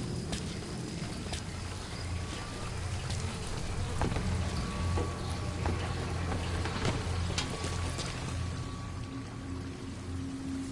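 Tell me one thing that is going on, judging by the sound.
Footsteps crunch softly on dirt and gravel.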